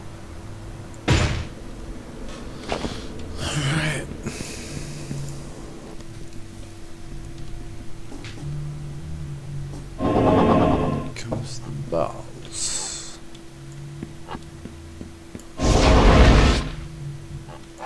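Game effects whoosh and crackle in short bursts.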